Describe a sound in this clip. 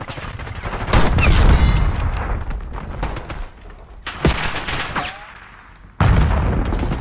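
A sniper rifle fires loud, booming shots.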